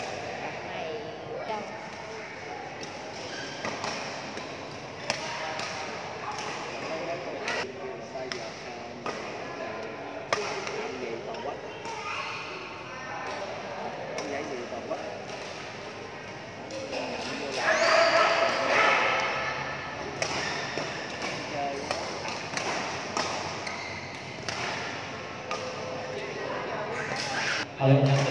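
Voices of several people chatter in a large echoing hall.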